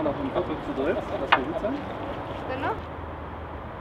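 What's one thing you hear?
Water pours from a watering can onto soil.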